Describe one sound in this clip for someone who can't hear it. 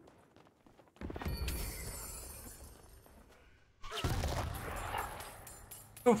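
Explosions boom loudly in a video game.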